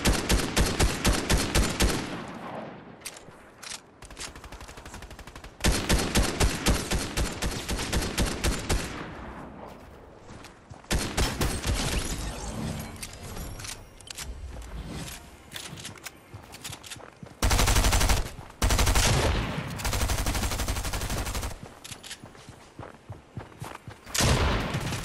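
A video game automatic rifle fires rapid bursts of shots.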